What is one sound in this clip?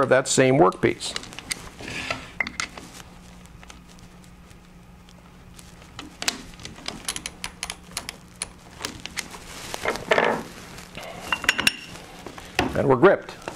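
A metal tool clicks and ratchets against a metal part.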